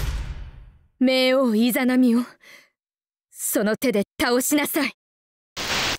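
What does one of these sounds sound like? A young woman speaks in a strained, dramatic voice.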